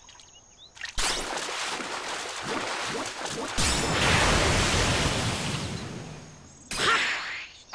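A big splash rushes loudly as a huge fish bursts out of the water.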